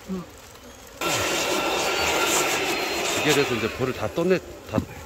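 A bee vacuum whirs loudly.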